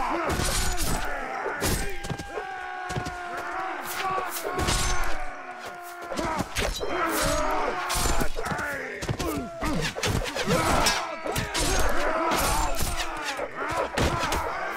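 Swords and weapons clash and clang in a battle.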